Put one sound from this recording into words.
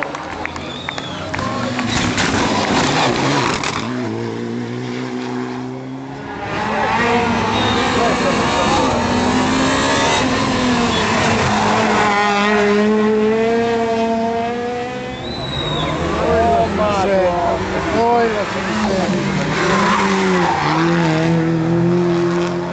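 Rally car engines roar past at close range, revving up and down through the gears.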